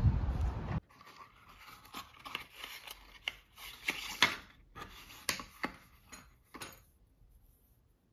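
Cardboard boxes rustle and tap as hands handle them.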